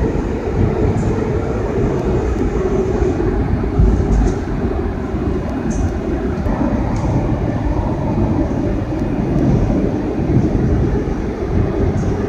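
A subway train rumbles loudly through a tunnel at speed.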